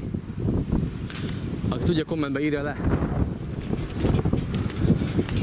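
Wind blows hard across an open field, buffeting the microphone.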